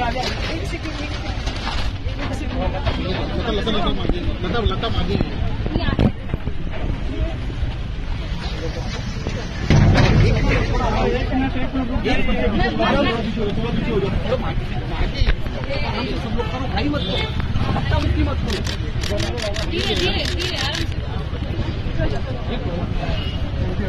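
A crowd of men and women talk and call out all around, close by.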